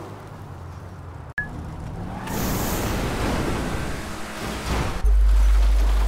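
A jet-powered car roars at full throttle.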